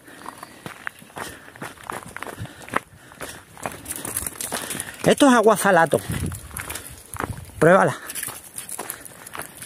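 Footsteps crunch on loose stones.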